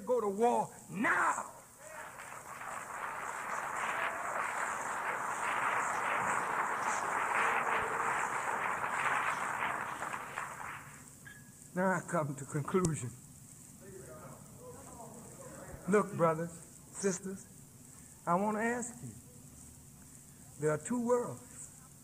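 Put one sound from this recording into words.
A man speaks forcefully into a microphone, his voice echoing.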